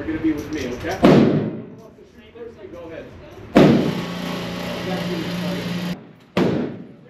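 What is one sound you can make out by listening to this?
Loud gunshots boom from nearby shooting lanes, echoing in a hard room.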